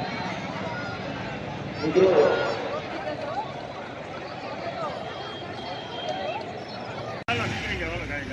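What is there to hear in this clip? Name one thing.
A crowd murmurs and moves about.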